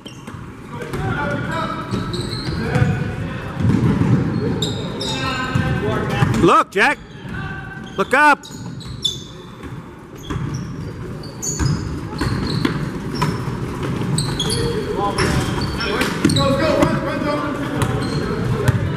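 Spectators and players chatter and call out in a large echoing gym.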